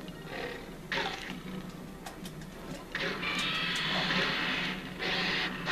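Loud blasts and crashes from a monster fighting game burst out again and again.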